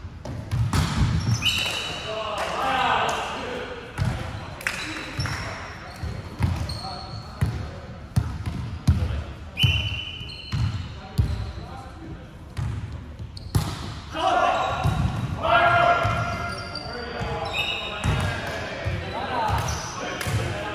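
Shoes squeak sharply on a hard court floor.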